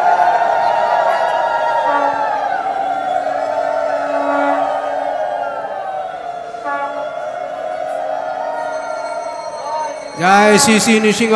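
A large crowd of men and women sings together loudly in an echoing hall.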